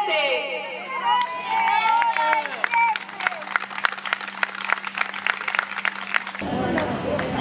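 A crowd claps hands rhythmically.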